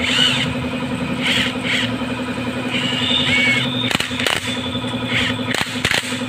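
A tool clicks and scrapes against metal as a screw is turned.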